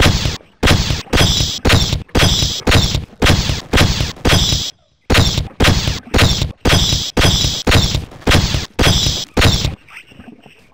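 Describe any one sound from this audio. A video game weapon strikes in a rapid rhythm.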